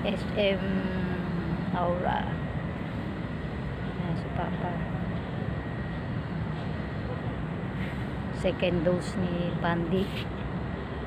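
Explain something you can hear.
An older woman speaks close to a phone's microphone.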